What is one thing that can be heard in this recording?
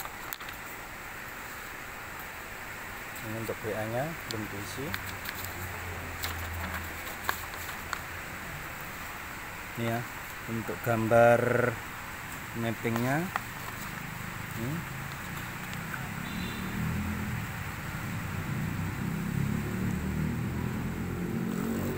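Paper sheets rustle as pages are flipped by hand.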